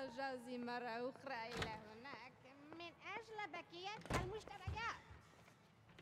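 Women talk and laugh nearby.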